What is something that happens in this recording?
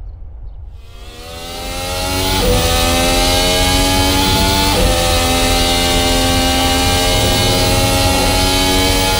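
A racing car engine screams at high revs up close, shifting up through the gears.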